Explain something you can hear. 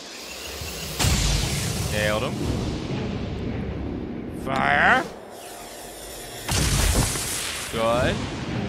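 Gunfire crackles in loud bursts.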